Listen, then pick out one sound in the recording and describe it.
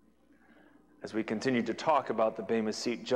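A man speaks with animation through a clip-on microphone.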